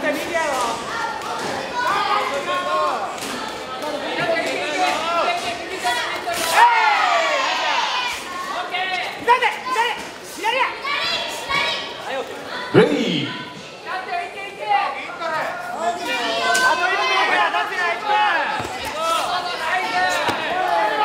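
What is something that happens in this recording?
A crowd shouts and cheers loudly, with many voices calling out.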